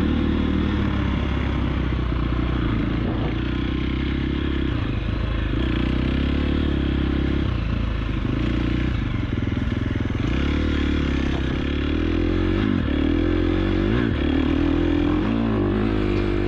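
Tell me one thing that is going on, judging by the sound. Tyres crunch and splash over muddy dirt.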